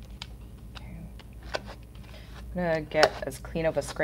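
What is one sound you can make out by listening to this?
A plastic card scrapes across a metal plate.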